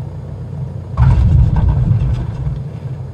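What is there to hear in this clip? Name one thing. Tyres bump and rumble onto a runway.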